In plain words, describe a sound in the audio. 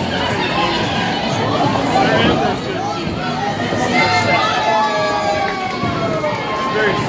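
A crowd of men and women chatter loudly nearby in an echoing hall.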